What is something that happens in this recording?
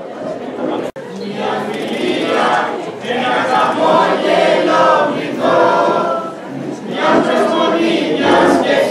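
A large crowd chatters loudly in an echoing hall.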